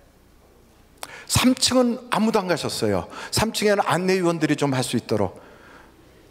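A middle-aged man speaks loudly and with animation through a microphone.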